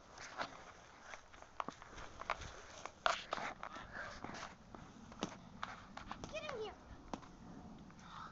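A lacrosse stick scrapes and taps against a ball on grass.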